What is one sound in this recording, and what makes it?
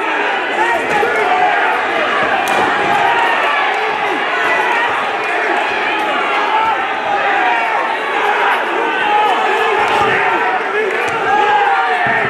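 Kicks and punches thud against bodies.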